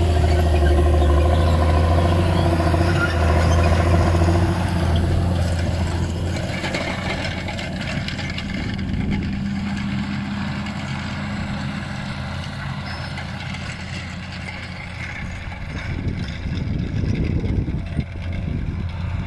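A tractor engine rumbles steadily nearby and slowly moves away.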